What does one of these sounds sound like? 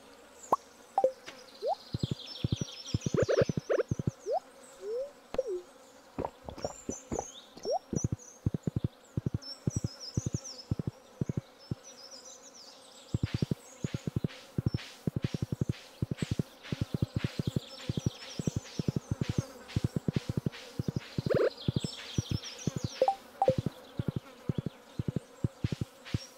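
Footsteps patter quickly and evenly on the ground.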